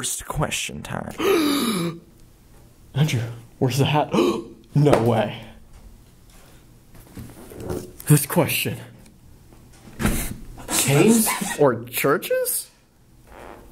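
Young men talk nearby in a small room.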